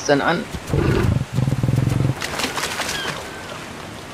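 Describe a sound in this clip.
Water splashes under heavy footsteps.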